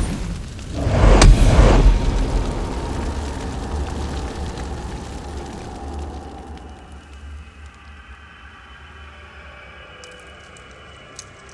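Flames crackle and roar, slowly dying down.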